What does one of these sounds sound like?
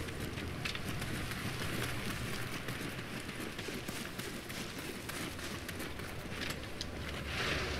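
Footsteps crunch through grass and leaves.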